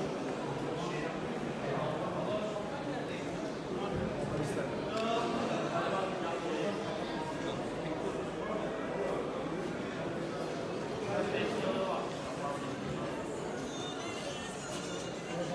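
A crowd of men and women chatter all around in a large echoing hall.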